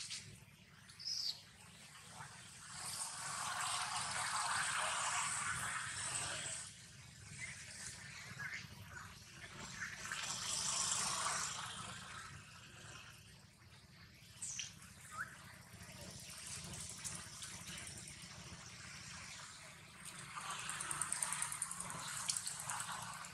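A small monkey chews and nibbles on food.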